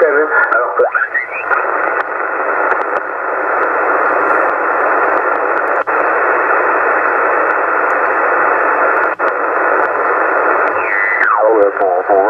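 A radio receiver hisses and crackles with static as it is tuned.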